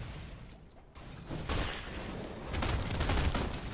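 Sword strikes and blasts crash loudly in a fight.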